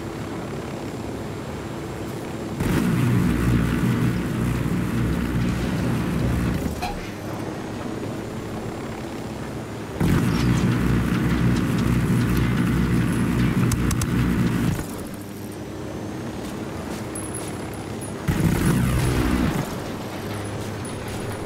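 A helicopter's rotor drones steadily overhead.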